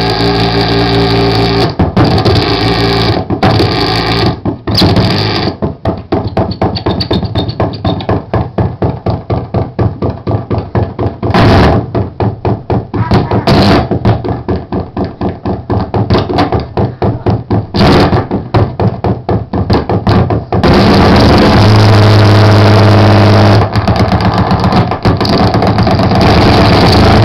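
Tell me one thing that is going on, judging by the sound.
Loud electronic dance music with a fast, pounding beat plays through big loudspeakers.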